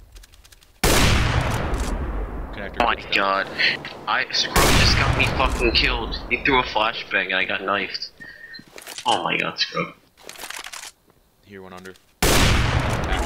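A rifle fires loud, booming shots that ring out.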